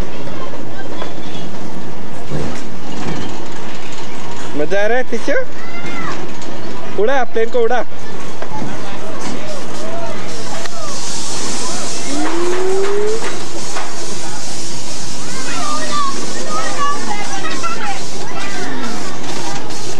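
Young children chatter and call out.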